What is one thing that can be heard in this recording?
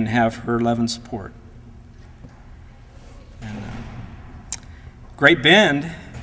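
A middle-aged man speaks calmly into a microphone, heard through a loudspeaker in a large room.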